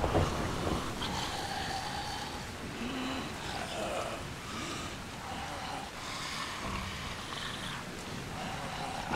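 A creature growls and snarls close by.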